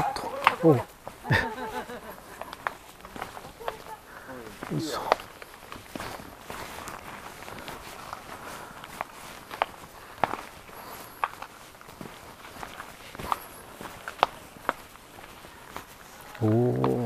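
Footsteps scuff and tap on stone steps.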